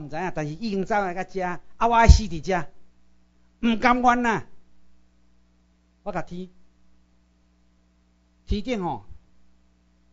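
A middle-aged man speaks with animation through a microphone and loudspeakers, in bursts with pauses.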